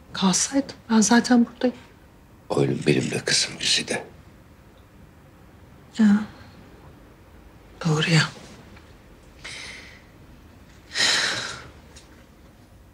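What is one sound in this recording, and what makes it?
A middle-aged woman speaks quietly and tensely, close by.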